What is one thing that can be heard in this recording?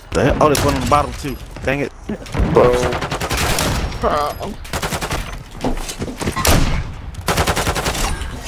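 Rifle shots crack sharply.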